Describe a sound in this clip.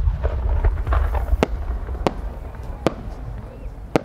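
A firework whistles as it rises.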